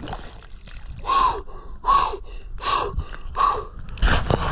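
Water laps and sloshes close by outdoors.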